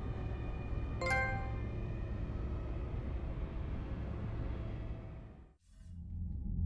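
A spaceship's engines rumble low and steady, then fade away.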